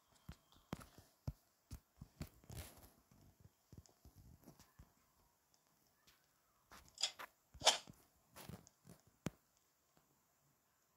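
Footsteps patter quickly across a hard floor.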